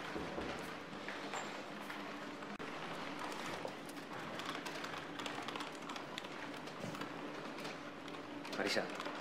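Computer keys clatter as several people type.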